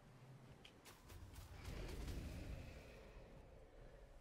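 A fireball whooshes and bursts.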